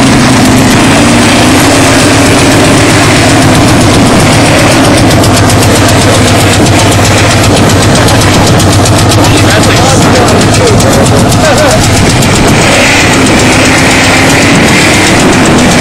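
A pickup truck engine revs loudly.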